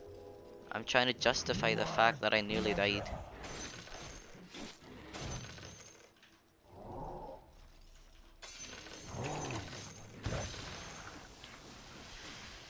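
Magic spells whoosh and crackle during a fight in a video game.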